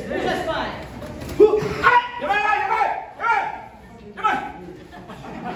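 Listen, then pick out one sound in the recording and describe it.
Young fighters shout loudly in a large echoing hall.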